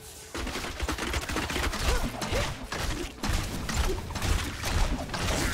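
Explosions and impacts crackle and thud.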